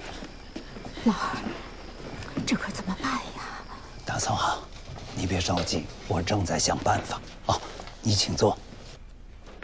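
A middle-aged woman speaks calmly in reply.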